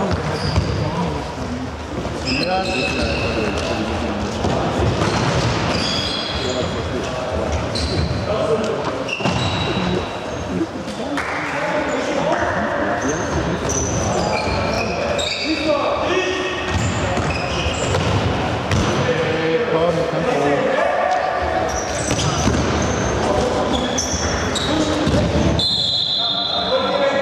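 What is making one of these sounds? Young men shout to one another across an echoing hall.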